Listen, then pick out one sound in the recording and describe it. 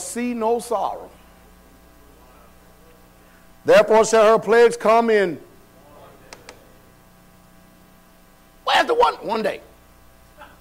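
A man speaks with emphasis in short bursts, heard in a room with a slight echo.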